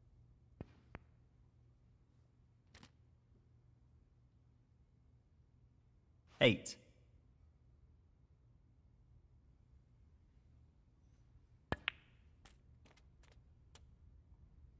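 Snooker balls click together.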